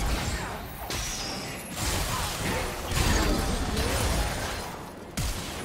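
Magic spells whoosh and burst in quick succession.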